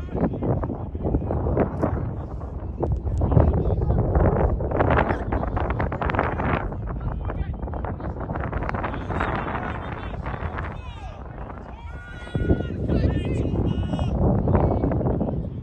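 Young women shout to each other across an open field in the distance.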